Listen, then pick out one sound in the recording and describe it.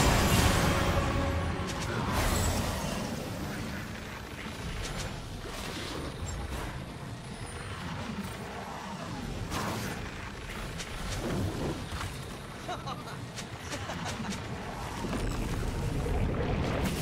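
Game weapons clash and strike in quick bursts.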